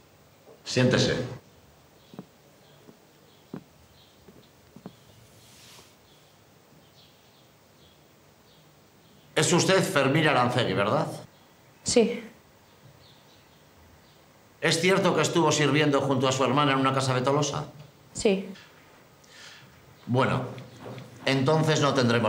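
A man speaks calmly and gravely nearby.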